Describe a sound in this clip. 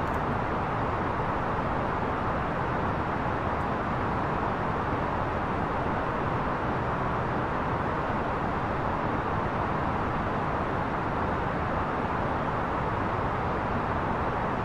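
Wind rushes steadily against an airliner's cockpit in flight.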